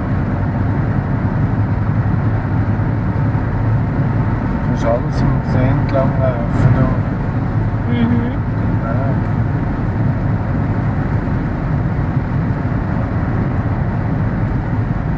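A car engine hums steadily as tyres roll over a smooth road.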